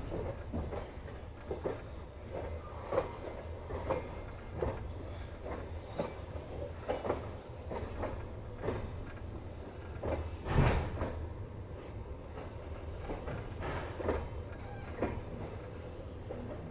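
Train wheels clack over rail joints in a regular rhythm.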